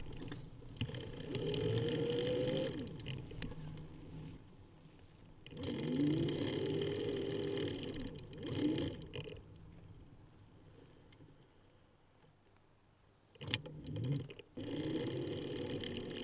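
Small bicycle tyres roll and hum over a paved path.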